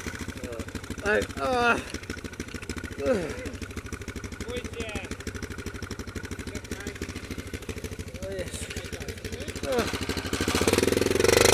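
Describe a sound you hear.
A single-cylinder quad idles.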